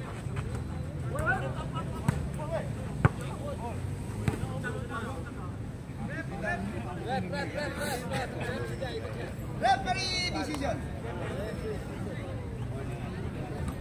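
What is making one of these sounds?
Young men shout and call out outdoors during a game.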